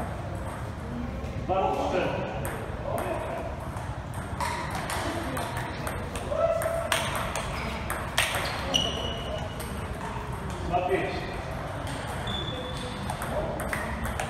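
A ball clicks sharply back and forth on paddles and a table.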